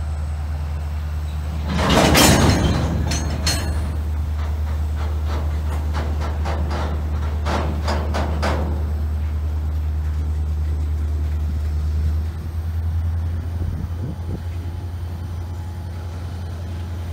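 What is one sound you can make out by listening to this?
A freight train rumbles steadily past close by.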